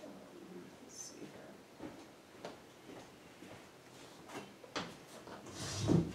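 Footsteps shuffle across the floor.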